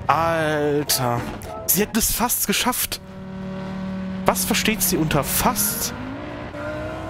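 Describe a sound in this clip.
A man talks loudly close to a microphone.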